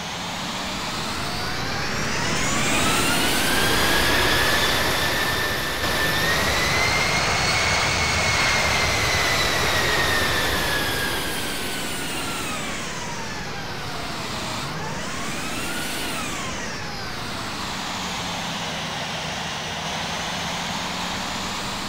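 A jet airliner's engines roar and whine, the pitch rising and falling as the plane flies past.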